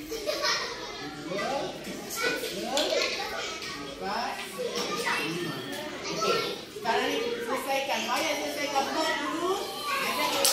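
Young children talk with animation close by.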